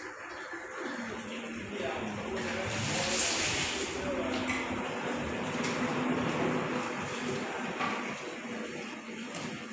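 Water splashes as it is poured over stone.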